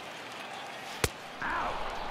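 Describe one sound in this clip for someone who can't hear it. A wooden bat cracks sharply against a baseball.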